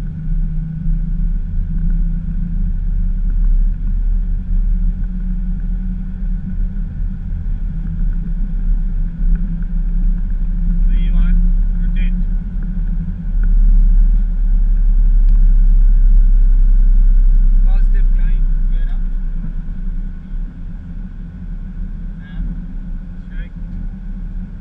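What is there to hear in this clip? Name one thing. Jet engines roar steadily at full power.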